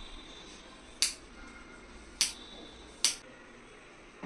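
Scissors snip through hair.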